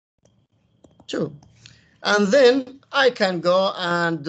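A man talks calmly through a microphone on an online call.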